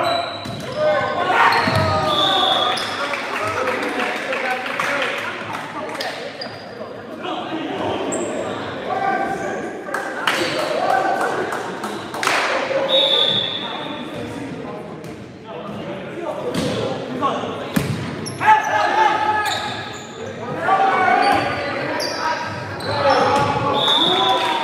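Shoes squeak sharply on the gym floor.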